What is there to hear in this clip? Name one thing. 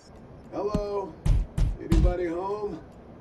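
A man knocks on a glass door.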